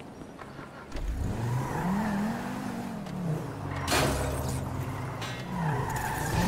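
A car engine starts and revs, then idles.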